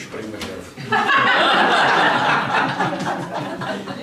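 A group of people laugh loudly together.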